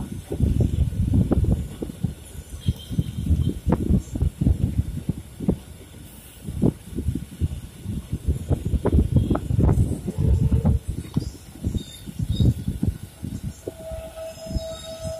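Train wheels rumble and clatter over rail joints, heard from inside a moving train.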